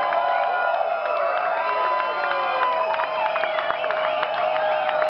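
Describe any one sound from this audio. An electric guitar wails loudly with distorted, squealing notes.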